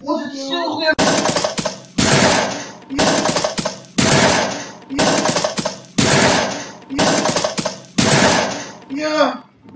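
Gunshots ring out in loud, evenly spaced bursts.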